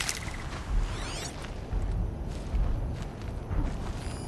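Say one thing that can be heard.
A shimmering electronic scanning sound sweeps in.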